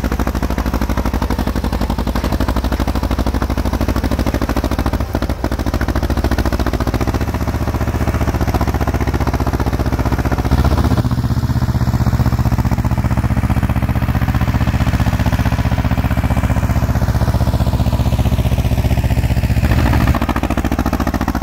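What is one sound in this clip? A tractor's diesel engine chugs steadily close by.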